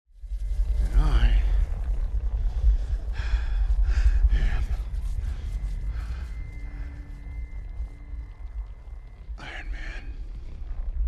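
A man speaks quietly and strained, close by.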